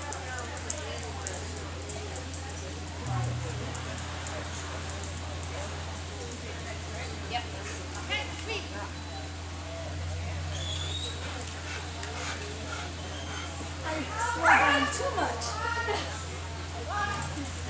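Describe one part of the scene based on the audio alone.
Spectators murmur and talk quietly in a large echoing hall.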